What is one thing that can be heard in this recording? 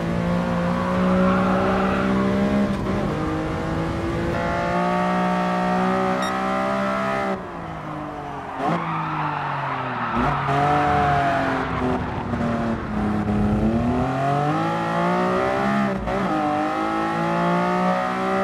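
A racing car engine roars loudly, revving up through the gears and dropping in pitch when it shifts and brakes.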